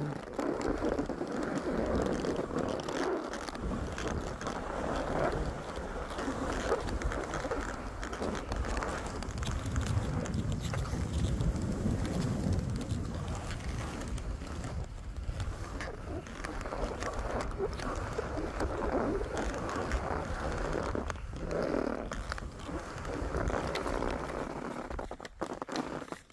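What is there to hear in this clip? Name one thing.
Wind rushes loudly past the skier.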